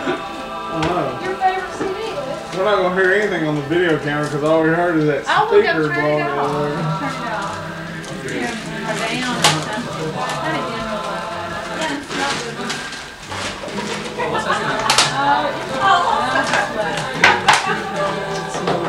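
Wrapping paper rustles and crinkles as gifts are opened.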